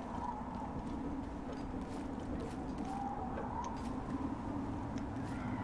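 Footsteps creak and scuff on wooden planks.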